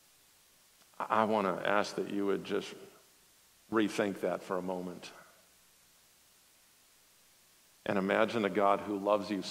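A man speaks calmly through a microphone in a large room, pausing between phrases.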